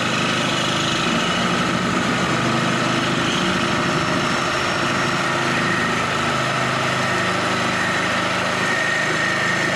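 A reciprocating saw buzzes loudly, cutting through a metal tube.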